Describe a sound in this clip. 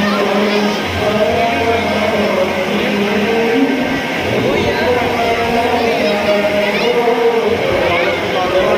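A dense crowd of men and women talks and calls out all around, close by and echoing in a busy indoor hall.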